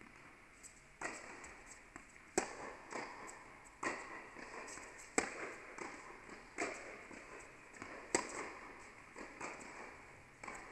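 Tennis balls are struck with rackets, with sharp pops echoing around a large indoor hall.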